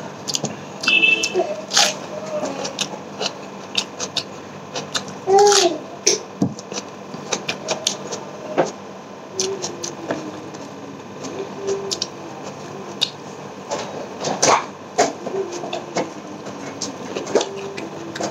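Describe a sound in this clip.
A man hums briefly with his mouth full.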